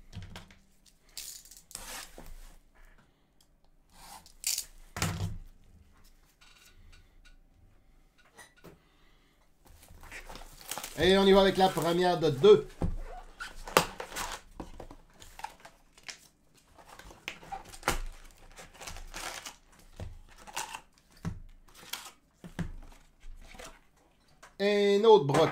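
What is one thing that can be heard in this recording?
Plastic wrappers crinkle and rustle as packs are handled.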